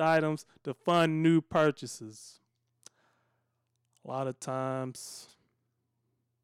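A middle-aged man speaks with animation, close into a microphone.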